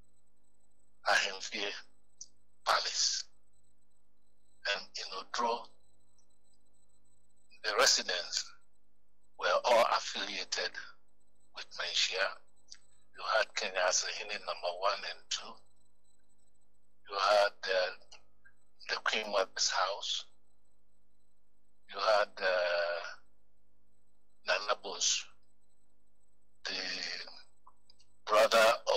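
A man speaks into a microphone in short bursts with pauses between them.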